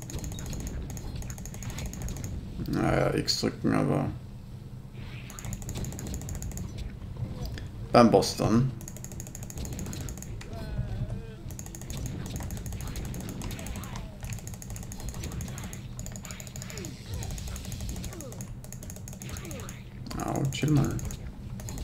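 Magic spells crackle and zap in a fight.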